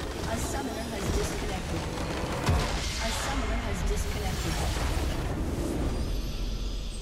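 Game spells and explosions crash and burst loudly.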